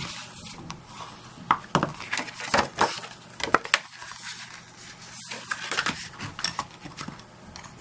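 A bone folder scrapes along a paper crease.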